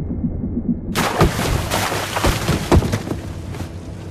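Water splashes loudly as a person climbs out of it.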